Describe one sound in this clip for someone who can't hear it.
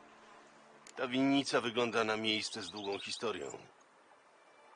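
A man speaks calmly, close to a microphone.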